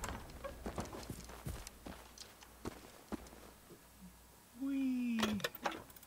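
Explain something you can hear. Footsteps thud on grass and wooden boards.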